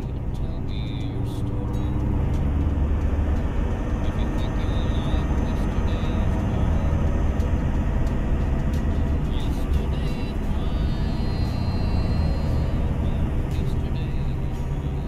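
Tyres crunch over snowy road.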